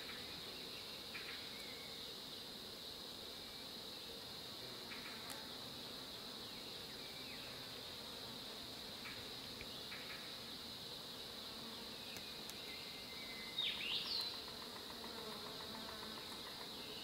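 Small objects clink and tap softly on stone.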